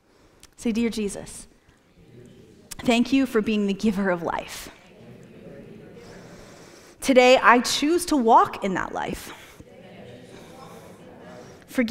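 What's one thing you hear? A young woman speaks calmly into a microphone, with pauses.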